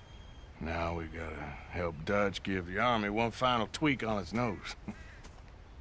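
A man speaks calmly in a deep voice.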